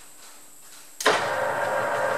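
A lathe motor starts up abruptly with a click.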